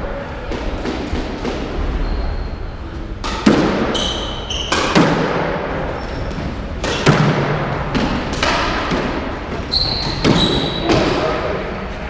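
A squash ball is struck by racquets and smacks off the walls of an echoing court.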